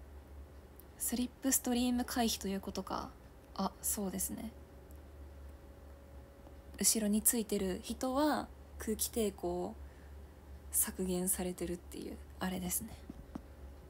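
A young woman speaks casually, close by, in bursts with pauses.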